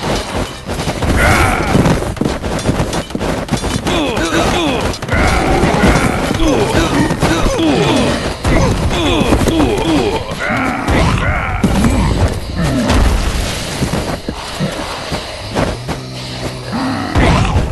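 Heavy club blows thud again and again.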